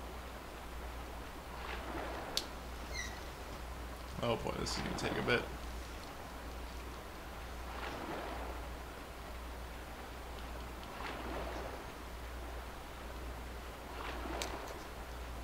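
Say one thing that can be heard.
Water splashes in rhythmic surges as a swimmer strokes through a river.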